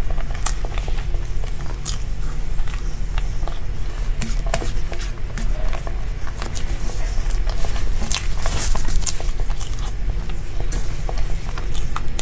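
A young woman chews soft cake with wet, smacking mouth sounds close up.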